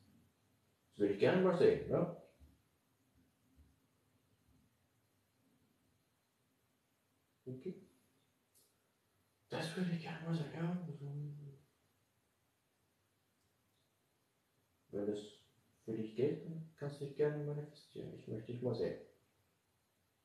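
A young man talks calmly nearby, in short bursts.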